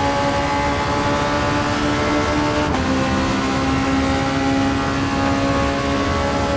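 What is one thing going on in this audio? A racing car engine roars at high speed.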